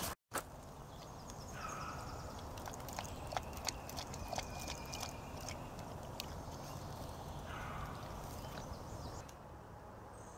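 A dog laps and crunches food from a metal bowl.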